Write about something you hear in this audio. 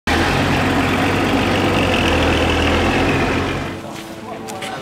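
A heavy truck engine rumbles nearby.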